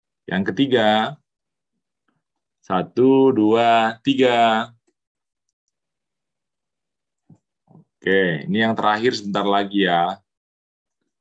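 A man speaks with animation through an online call.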